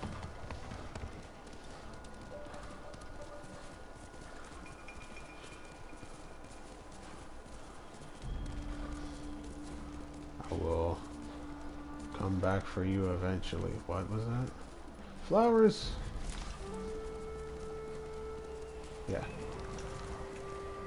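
Horse hooves gallop steadily over soft ground.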